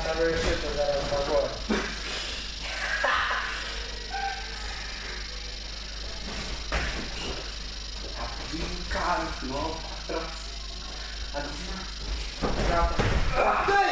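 Bare feet shuffle and scuff on a mat.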